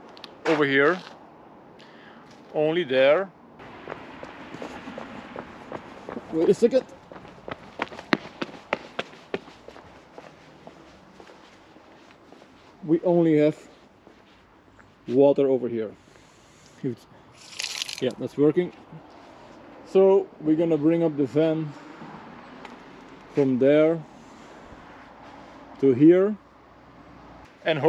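A man talks calmly and close by, in short phrases with pauses.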